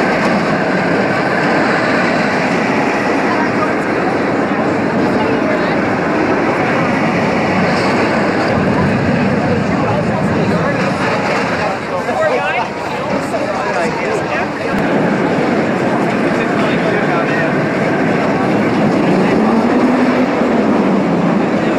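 A large outdoor crowd chatters all around.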